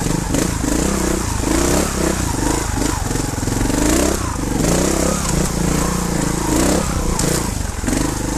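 Tyres crunch over dry leaves and stones.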